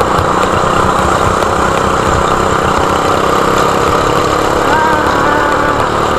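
Another go-kart engine whines nearby.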